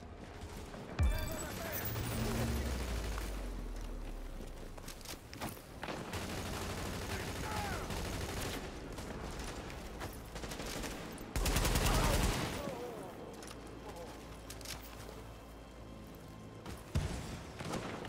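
Rifle shots ring out in rapid bursts.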